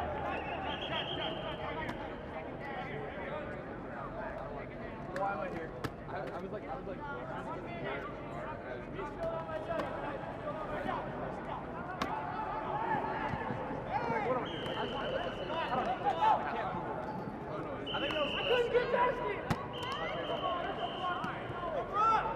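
A referee blows short whistle blasts.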